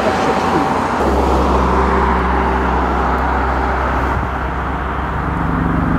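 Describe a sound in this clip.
An aircraft's rotors drone steadily in the distance.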